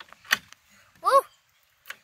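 A padlock and keys rattle.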